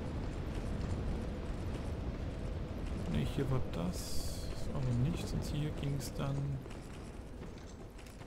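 Armoured footsteps clank on stone as a knight runs.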